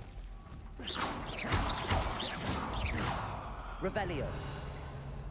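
A magic spell crackles and whooshes.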